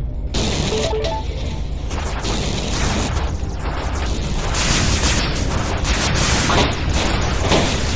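A spaceship engine roars steadily with rising and falling rushes.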